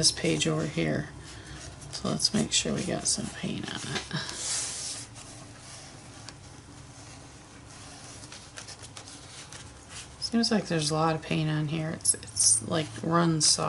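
Fingers rub and smear paint across paper.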